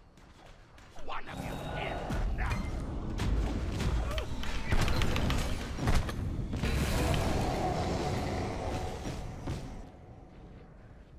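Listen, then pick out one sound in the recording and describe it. Magical blasts and whooshes crackle in a fantasy game battle.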